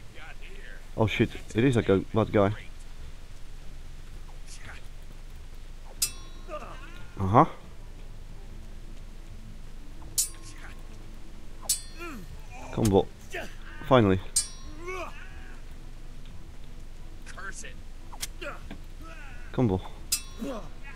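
A man shouts and taunts nearby.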